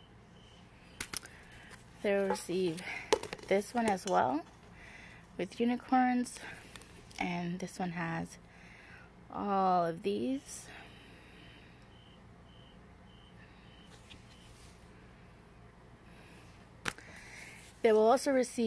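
Stiff paper sheets rustle and tap as they are handled.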